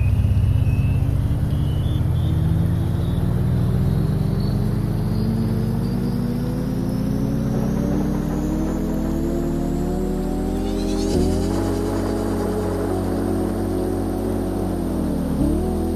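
A small speaker plays a slowly rising electronic tone.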